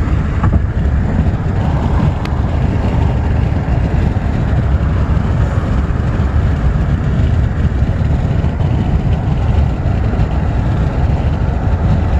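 A car's engine and tyres rumble steadily from inside while driving fast on a highway.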